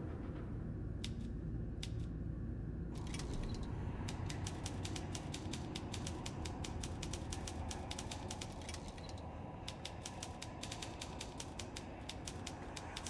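A typewriter-like machine clicks and clacks rapidly as it types.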